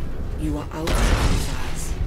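Laser cannons fire in a short burst.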